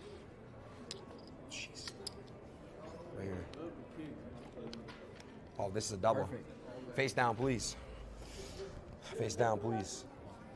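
Cards flick and slide on a table.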